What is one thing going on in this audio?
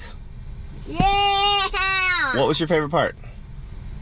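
A small child shouts in a high voice close by.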